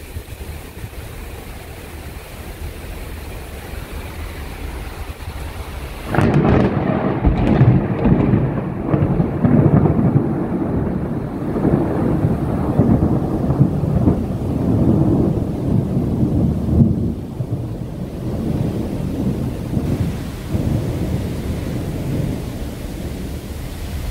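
Sea water churns and rushes in a wake below.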